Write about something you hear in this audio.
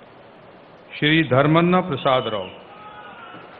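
A man speaks loudly into a microphone.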